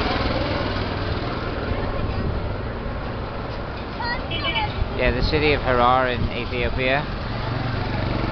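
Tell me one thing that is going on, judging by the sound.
A small motor engine rumbles steadily.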